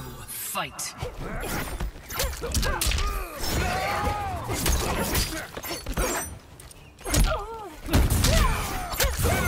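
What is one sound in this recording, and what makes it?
Punches and kicks land with heavy thuds and whooshes.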